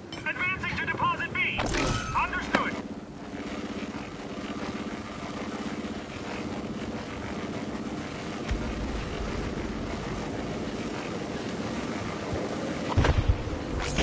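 Wind roars steadily through a dust storm.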